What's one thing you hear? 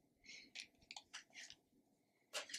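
Cards rustle and tap in a woman's hands.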